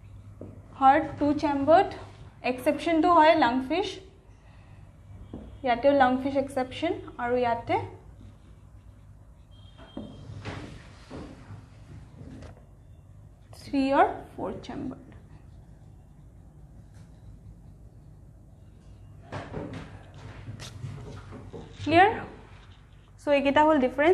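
A young woman explains calmly, close by, pausing now and then.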